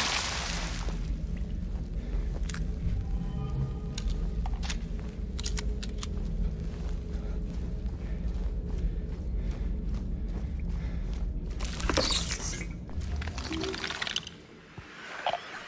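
Footsteps tread steadily on a stone floor.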